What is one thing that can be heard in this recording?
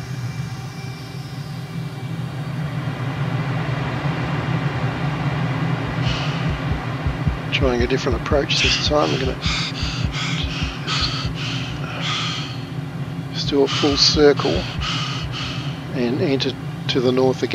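Wind rushes past the cockpit, growing louder.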